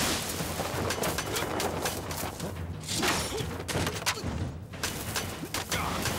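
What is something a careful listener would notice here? Blades swish sharply through the air.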